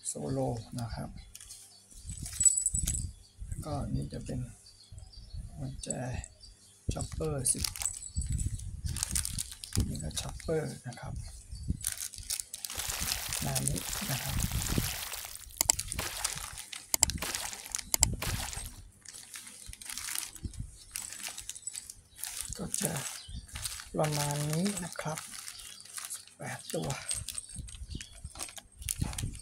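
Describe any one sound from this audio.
Plastic wrappers crinkle and rustle as they are handled.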